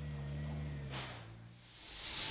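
A forklift engine hums and whines.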